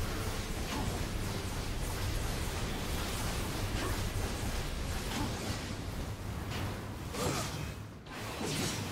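Fiery explosions boom and crackle.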